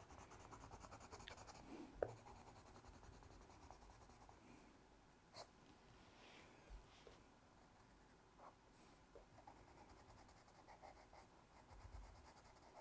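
A coloured pencil scratches softly on paper in quick short strokes.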